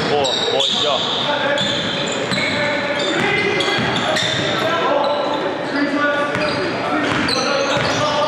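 A basketball thumps as it is dribbled on the court.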